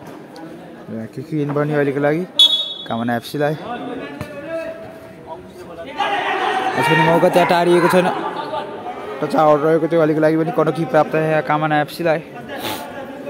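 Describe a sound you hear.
Men shout and cheer loudly nearby.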